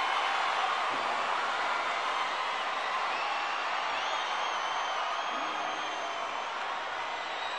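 Fans whistle loudly from the crowd.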